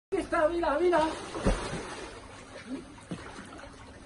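Water splashes as a man swims.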